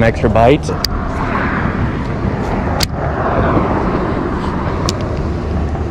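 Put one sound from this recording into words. A fishing reel clicks and whirs as its handle turns.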